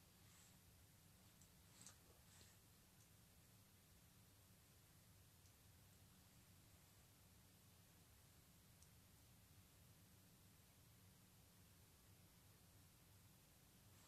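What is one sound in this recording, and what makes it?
Fingers rub softly over wet skin.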